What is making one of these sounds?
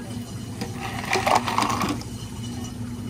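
Ice cubes clatter into a cup.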